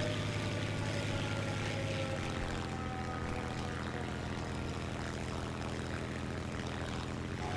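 Wind rushes past a diving plane.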